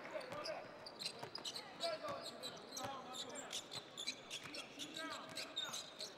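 A basketball is dribbled on a hardwood court.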